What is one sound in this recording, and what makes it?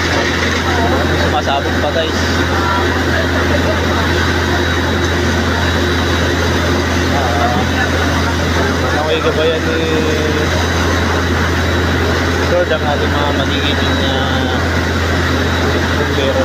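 A large fire roars and crackles nearby.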